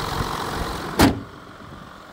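A car bonnet slams shut with a loud thud.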